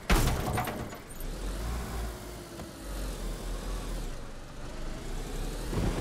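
A car engine starts and revs.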